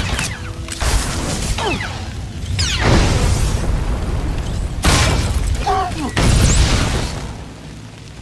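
Energy weapons zap and whoosh in rapid bursts.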